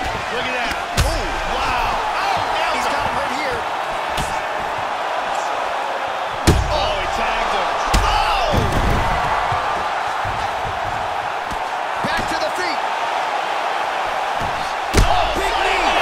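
Heavy punches and kicks land with sharp thuds.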